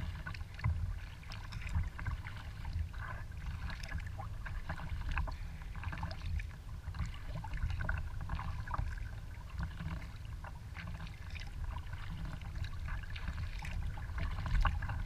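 Wind rumbles outdoors on open water.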